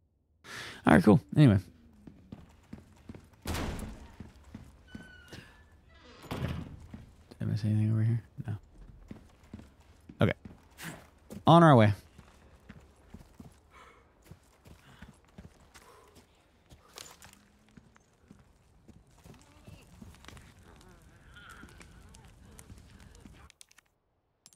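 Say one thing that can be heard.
Footsteps thud on wooden floors.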